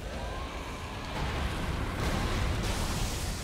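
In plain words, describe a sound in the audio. A fiery blast roars and rumbles loudly.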